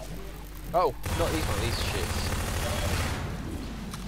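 Rapid gunfire rattles loudly.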